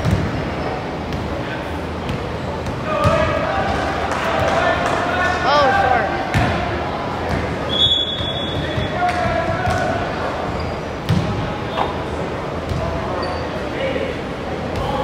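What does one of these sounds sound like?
Young players shout to each other in an echoing hall.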